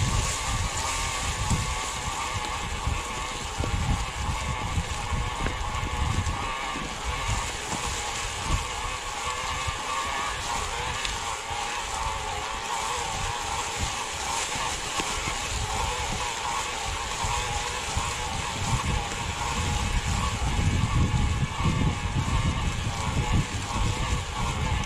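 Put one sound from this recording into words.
Bicycle tyres crunch and rustle over dry leaves on a dirt trail.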